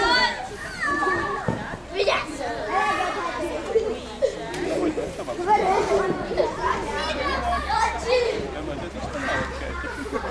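Several adults talk together nearby outdoors.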